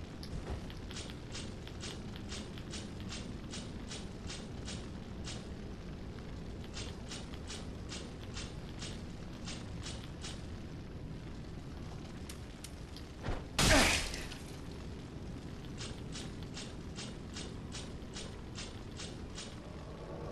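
Armored footsteps clank steadily on stone.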